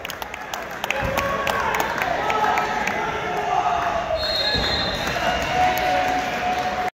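Many voices chatter in a large echoing gym.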